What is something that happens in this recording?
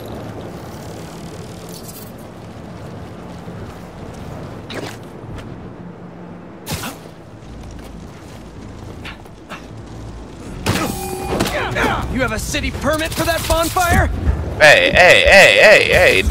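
Web lines shoot out with sharp zips.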